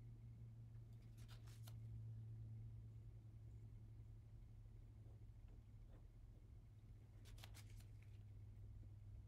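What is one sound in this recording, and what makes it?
A palette knife scrapes lightly against a hard surface.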